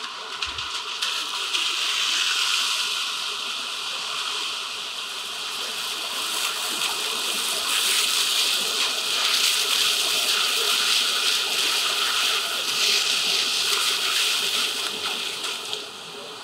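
Car tyres hiss over a wet road as vehicles pass.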